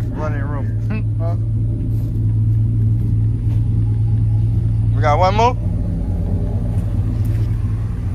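Footsteps crunch on dry grass and twigs.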